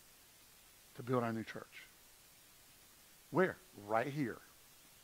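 A middle-aged man speaks with animation through a microphone, in short bursts with pauses.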